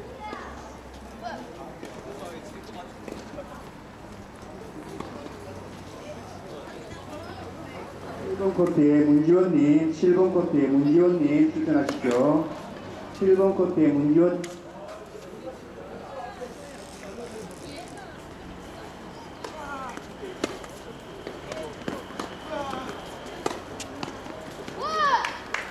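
Tennis balls are struck by rackets with faint, distant pops.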